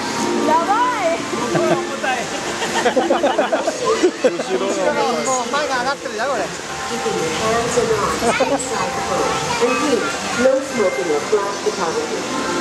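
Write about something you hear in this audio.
A crowd of people chatter and call out close by.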